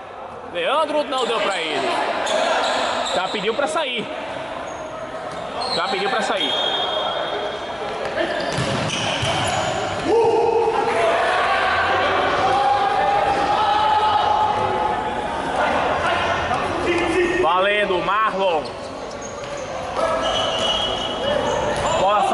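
Players' shoes squeak sharply on a hard court.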